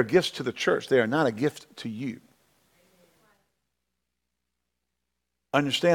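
A middle-aged man speaks with emphasis into a microphone, pausing briefly.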